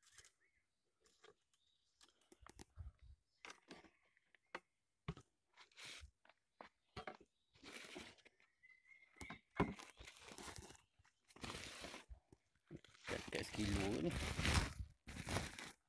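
A plastic sack rustles and crinkles as it is handled.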